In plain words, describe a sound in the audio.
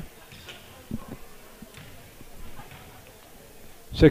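A basketball bounces on a wooden court floor.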